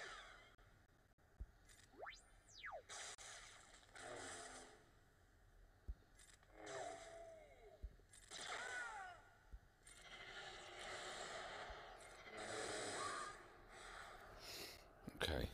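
Lightsabers hum and clash in a fast battle.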